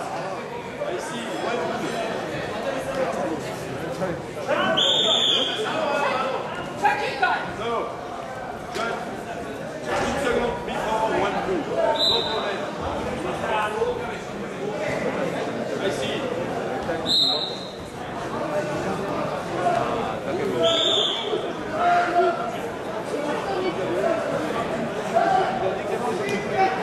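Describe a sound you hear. A large crowd murmurs and chatters, echoing in a big hall.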